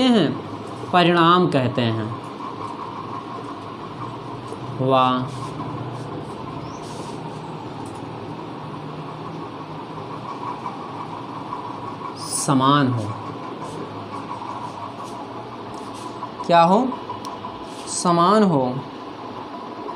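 A young man speaks in short, calm phrases close by.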